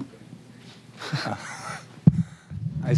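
A young man laughs briefly into a microphone.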